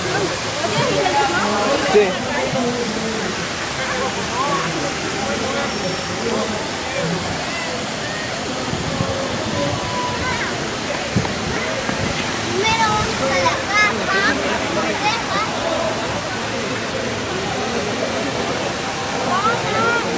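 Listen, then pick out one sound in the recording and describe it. A crowd of men and women chatters all around, close by, outdoors.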